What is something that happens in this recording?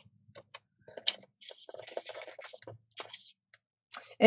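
A paper trimmer blade slides and cuts through card.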